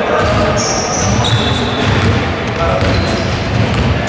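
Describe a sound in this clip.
A basketball bounces on a floor.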